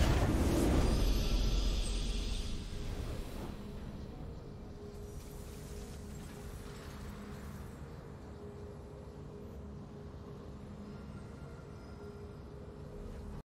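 Triumphant game music swells as a fanfare plays.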